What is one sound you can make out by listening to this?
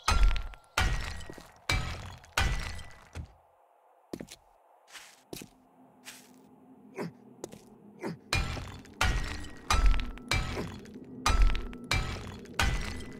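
A hammer strikes repeatedly, with sharp knocks that ring briefly.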